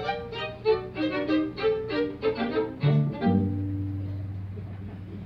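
A string quartet plays a lively melody and ends on a held chord that rings out.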